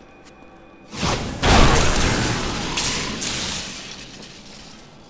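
An electric spell crackles and bursts loudly.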